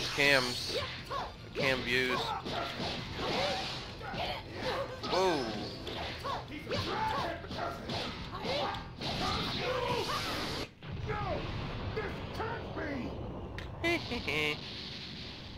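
Punches and energy blasts thud and crackle in a fight.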